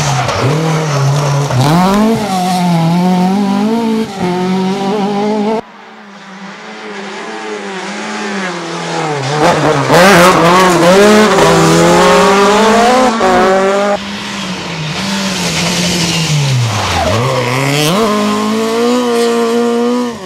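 Rally car engines roar loudly, revving up and down.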